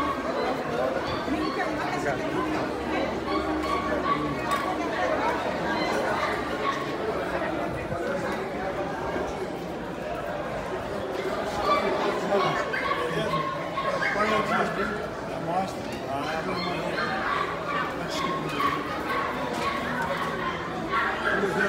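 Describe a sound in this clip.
A crowd of adults chatters all around in a busy open space.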